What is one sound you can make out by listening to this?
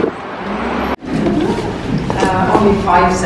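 A man speaks into a microphone in a reverberant room.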